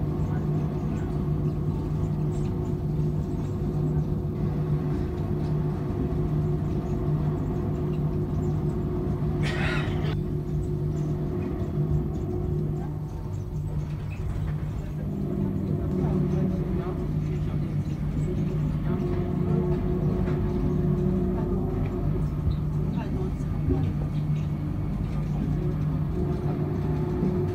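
A train hums and rumbles steadily as it rolls along.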